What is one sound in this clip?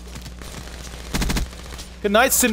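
A rapid burst of gunfire rattles.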